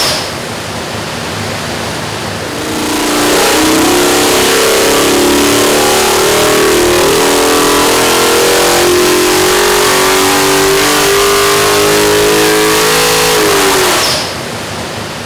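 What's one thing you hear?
An engine idles, then roars loudly as its pitch climbs steadily and cuts off.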